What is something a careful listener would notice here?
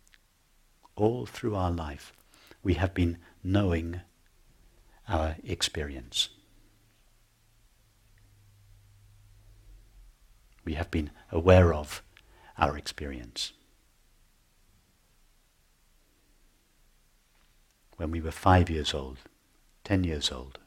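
A middle-aged man speaks calmly and slowly into a close microphone, with long pauses.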